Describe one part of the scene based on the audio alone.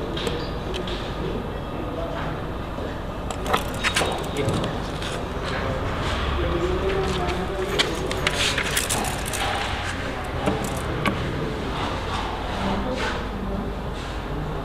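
A metal tape measure rattles and clicks against wood.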